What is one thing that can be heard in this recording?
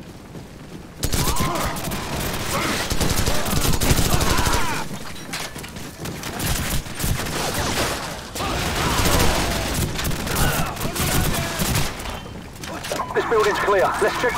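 Rapid gunshots fire.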